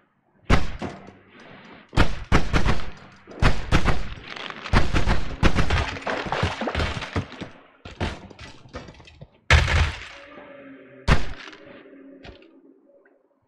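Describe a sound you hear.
Sharp digging and crunching sound effects tap in quick bursts.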